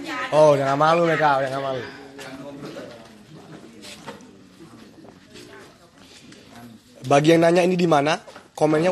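A man speaks loudly close by, drawing out his words.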